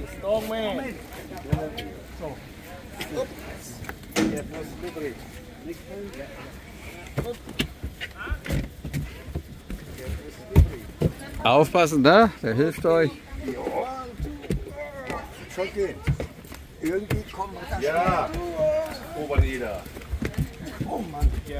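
Feet thud on a boat's deck as people climb aboard.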